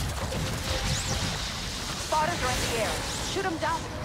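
Electric zaps crackle in a game battle.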